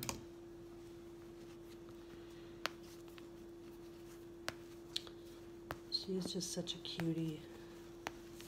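Soft fabric rustles as hands handle a baby's clothes.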